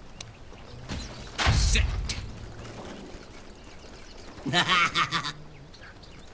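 Magical spell effects burst and whoosh in short blasts.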